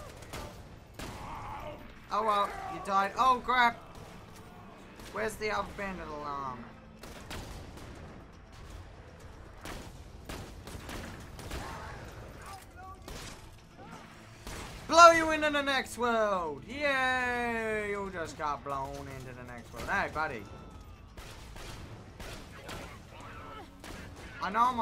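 Guns fire in sharp, rapid shots.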